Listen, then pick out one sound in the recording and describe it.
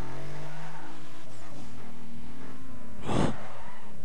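A racing car engine hums steadily and then winds down.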